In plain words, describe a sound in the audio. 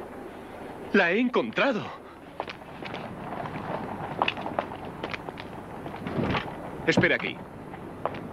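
A man speaks in a raised voice.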